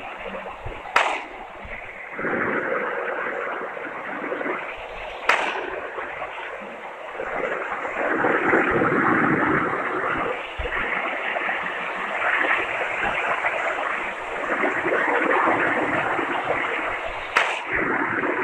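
A sniper rifle fires single sharp shots a few seconds apart.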